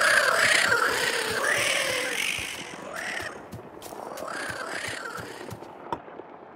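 A boy talks with animation into a nearby microphone.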